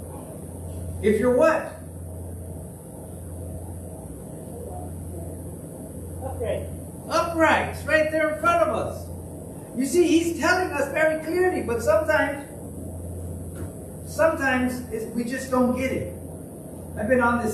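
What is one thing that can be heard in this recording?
A middle-aged man speaks with animation through a microphone, pausing between phrases.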